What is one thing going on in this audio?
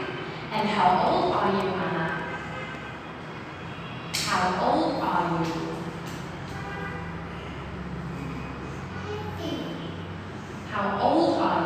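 A young woman speaks slowly and clearly to a child nearby.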